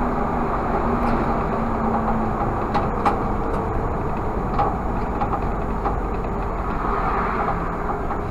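A car drives steadily along a road, its tyres humming and the cabin rattling softly.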